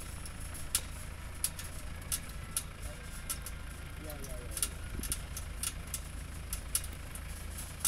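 A vehicle rattles and knocks over a bumpy dirt road.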